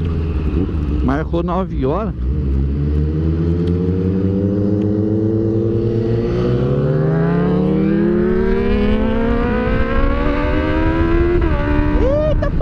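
A motorcycle engine revs and rises steadily in pitch as it speeds up.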